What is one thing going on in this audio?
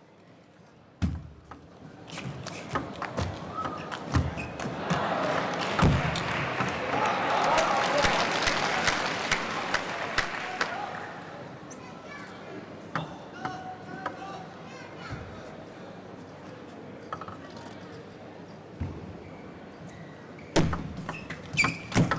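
A ball clicks back and forth across a table as players rally.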